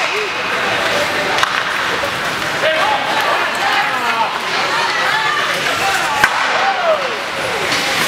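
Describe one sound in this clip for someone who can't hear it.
Spectators shout and call out in an echoing arena.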